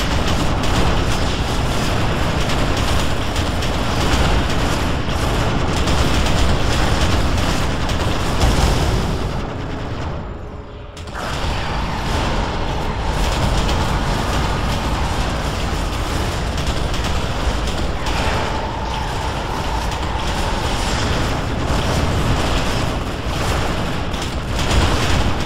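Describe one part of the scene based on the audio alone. Energy blasts crackle and boom during a fight.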